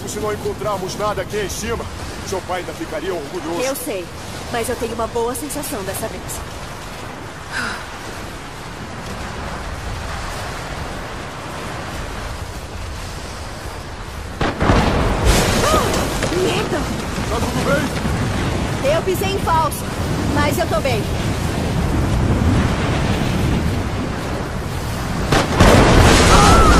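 Strong wind blows across a mountainside.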